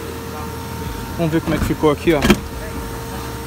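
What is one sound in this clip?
A seat lever clicks as a car seat is adjusted.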